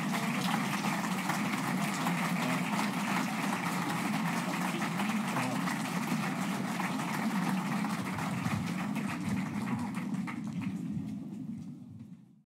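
An audience claps and applauds steadily, then fades.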